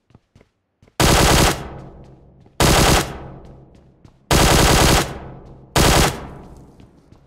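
Gunfire bursts loudly in short rapid volleys.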